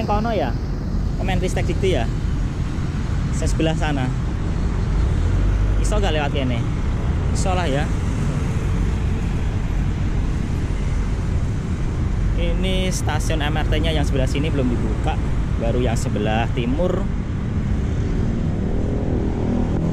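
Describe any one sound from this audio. Traffic rumbles steadily along a busy city road outdoors.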